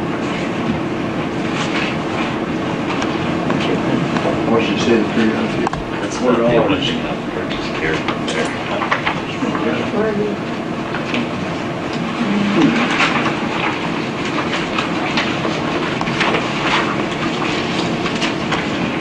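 Several men and women talk at once, a steady murmur of voices.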